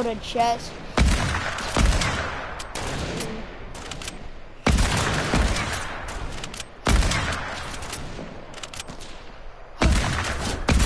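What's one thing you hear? A rifle fires loud, booming shots with a short echo.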